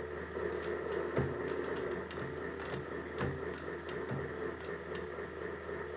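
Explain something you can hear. Arcade game music plays loudly through a cabinet speaker.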